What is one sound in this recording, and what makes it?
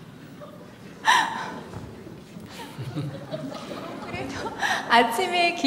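A woman speaks into a microphone in a large hall, her voice carried over loudspeakers.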